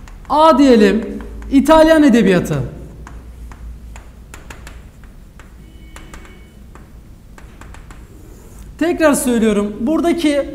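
A young man speaks clearly and calmly, close by.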